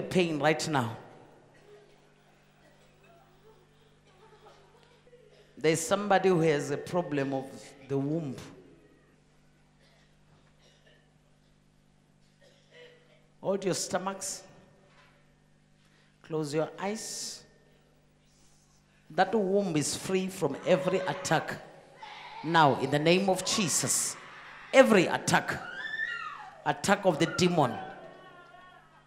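A woman prays aloud with fervour into a microphone, heard over loudspeakers in a large hall.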